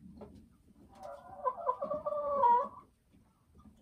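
A hen gives a loud, drawn-out cackle close by.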